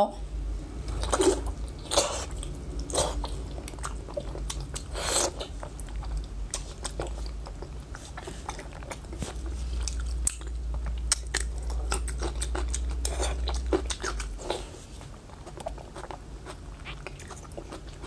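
A young woman bites and chews food noisily close to a microphone.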